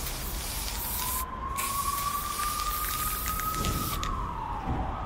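A spray can hisses in short bursts.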